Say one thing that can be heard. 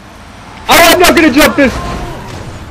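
A bicycle crashes hard onto the road.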